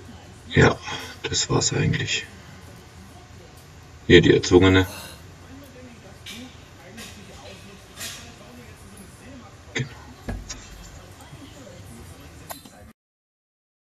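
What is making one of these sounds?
Dumbbells clink and knock.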